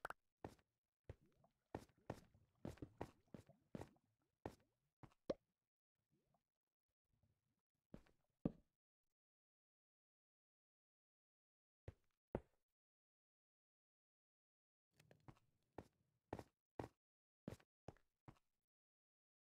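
Footsteps crunch on stone.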